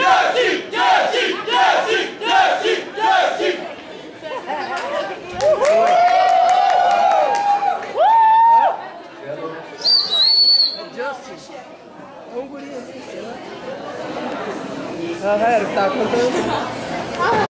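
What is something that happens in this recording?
A crowd of young people shouts and cheers.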